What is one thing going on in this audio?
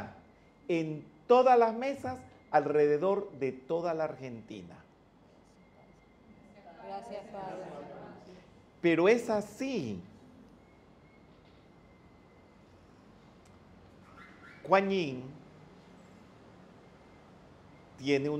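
An elderly man speaks with animation into a handheld microphone, close by.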